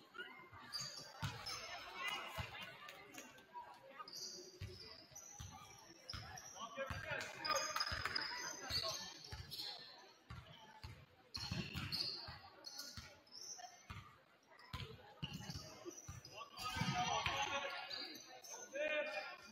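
Spectators murmur and call out in a large echoing gym.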